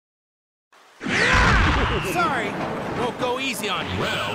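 A crackling energy blast roars and whooshes.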